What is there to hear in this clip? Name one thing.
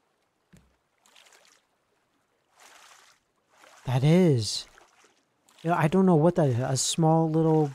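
A paddle splashes through water in slow strokes.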